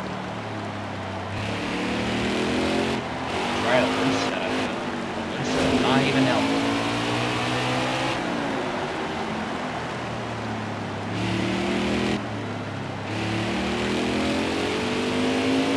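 A race car engine roars steadily, rising and falling in pitch as it shifts gears.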